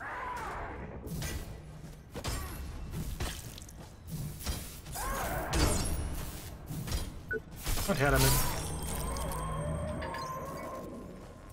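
Gunfire and impacts crack and clatter in a video game.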